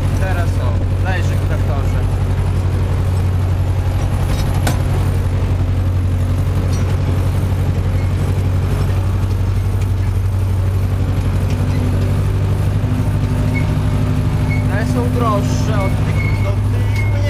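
A tractor cab rattles and clatters over rough ground.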